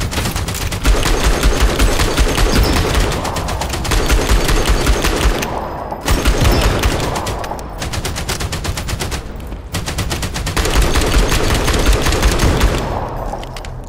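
A rifle fires in rapid, loud bursts.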